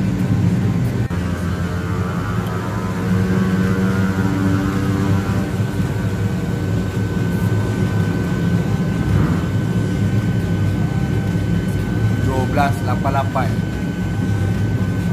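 A motorcycle engine runs steadily, with a deep, even drone.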